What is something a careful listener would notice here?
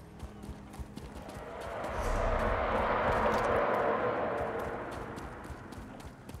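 Horse hooves clop on stone at a steady trot.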